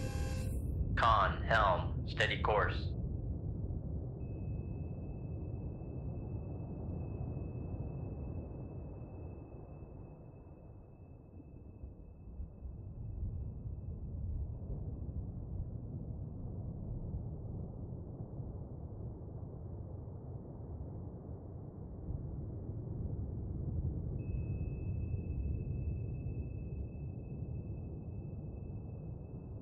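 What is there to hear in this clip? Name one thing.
A submarine's engine rumbles low and steady underwater.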